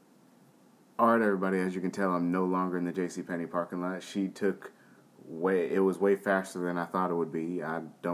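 A young man talks with animation, close up.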